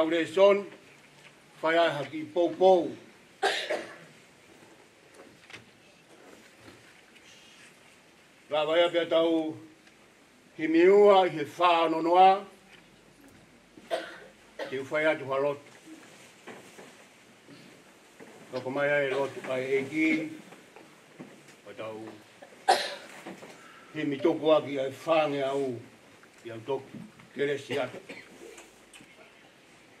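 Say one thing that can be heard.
A middle-aged man speaks slowly and solemnly into a microphone, with pauses between phrases.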